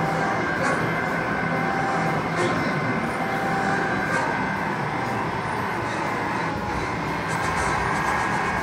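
Blasts and laser shots burst from the arcade game.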